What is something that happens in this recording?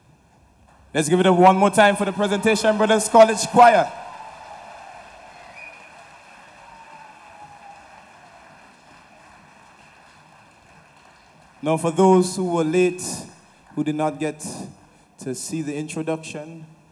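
A man speaks loudly into a microphone, heard through loudspeakers.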